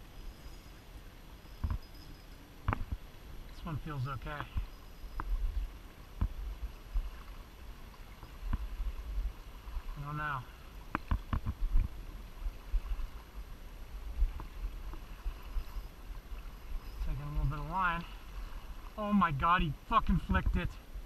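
A river flows and ripples close by.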